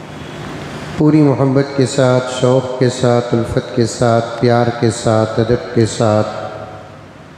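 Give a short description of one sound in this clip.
An elderly man chants melodically into a microphone, close and clear.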